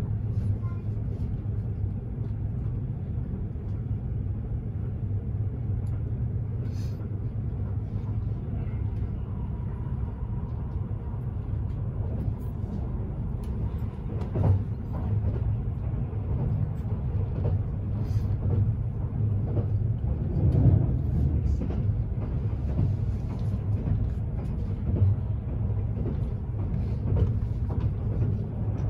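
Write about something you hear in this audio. Train wheels clack and rattle over the rails.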